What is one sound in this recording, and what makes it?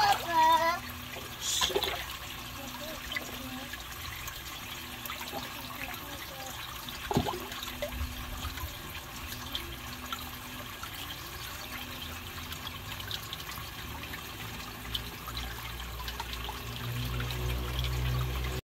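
Water bubbles and trickles softly in a tank.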